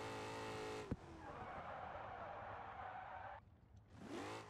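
Tyres screech as a car slides on asphalt.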